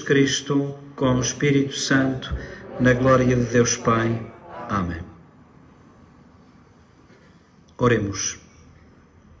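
A man chants and prays slowly into a microphone, with a slight echo.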